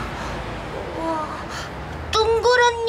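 A young woman exclaims with animation, close by.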